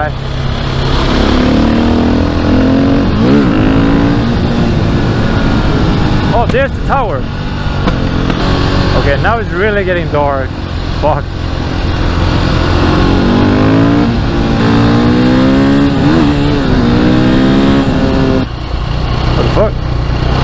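A single-cylinder supermoto engine revs up and down through the gears.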